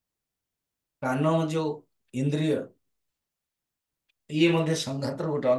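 An elderly man speaks calmly into a microphone, heard over an online call.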